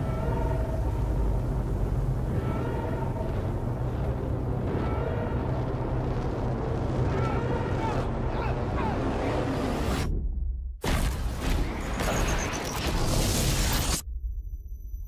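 Strong wind roars and howls outdoors.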